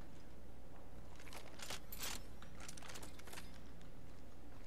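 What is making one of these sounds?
Items are picked up with short clicks.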